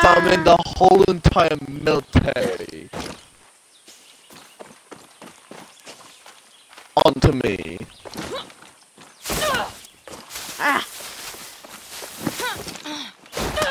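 Footsteps rustle through grass and leaves.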